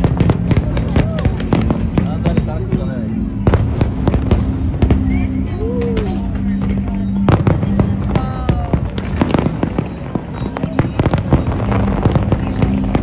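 Fireworks boom and bang in rapid bursts.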